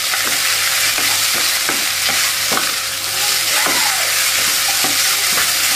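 Rice sizzles loudly in a hot pan.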